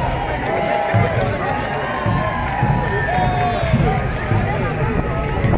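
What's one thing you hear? A crowd of spectators chatters and calls out outdoors.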